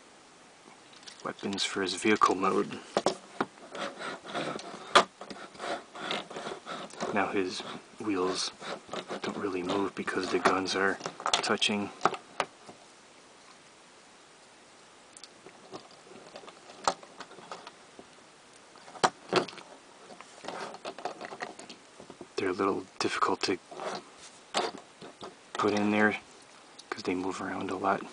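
Plastic toy parts click and snap as they are handled.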